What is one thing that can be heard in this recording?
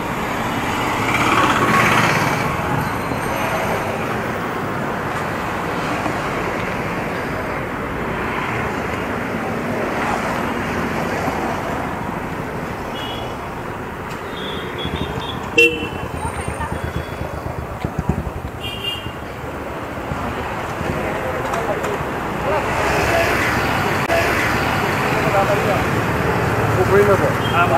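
Motorbikes pass by nearby.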